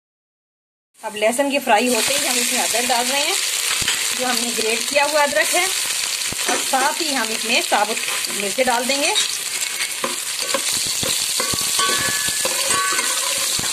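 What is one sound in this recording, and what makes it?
Hot oil sizzles and crackles steadily in a pan.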